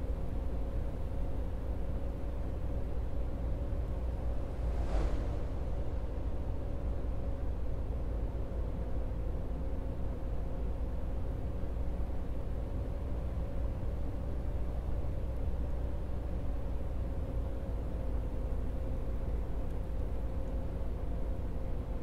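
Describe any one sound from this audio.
Tyres roll on asphalt.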